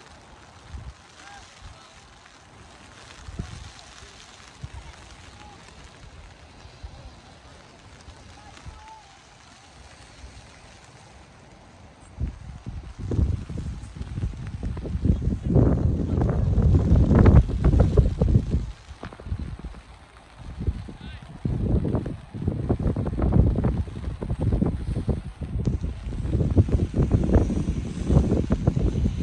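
Light rain falls steadily.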